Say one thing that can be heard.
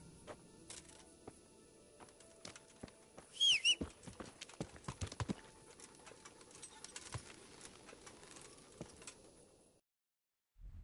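A horse's hooves thud on a dirt path.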